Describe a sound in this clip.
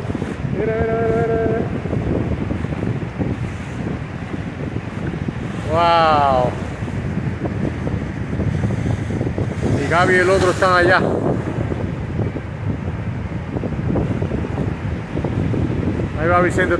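Waves wash and break steadily on the shore.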